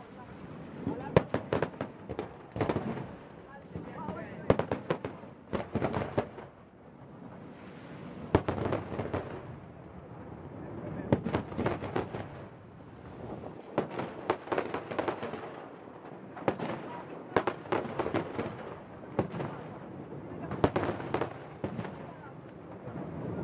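Fireworks burst with loud bangs and booms.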